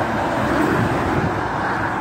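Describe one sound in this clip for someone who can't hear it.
A lorry rumbles past close by.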